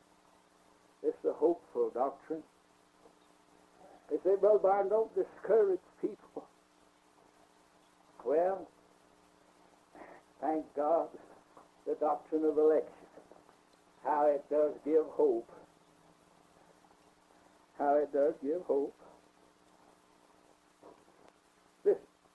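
An elderly man speaks calmly in short phrases with pauses, heard through an old recording.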